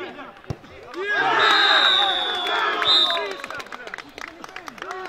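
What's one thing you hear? A group of men cheers loudly and excitedly.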